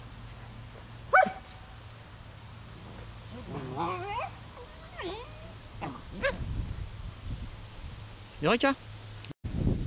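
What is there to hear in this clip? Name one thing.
A puppy yelps and whines in a high voice.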